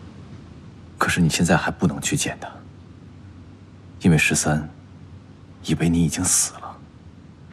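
A young man speaks calmly and seriously, close by.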